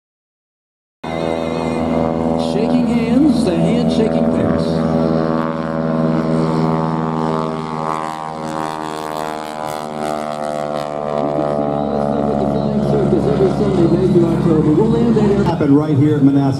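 A biplane engine drones overhead and slowly fades as it passes.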